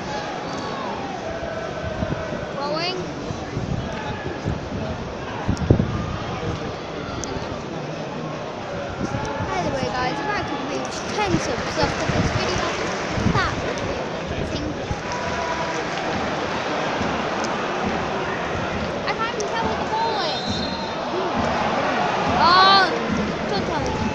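A large stadium crowd chatters and murmurs in a wide open space.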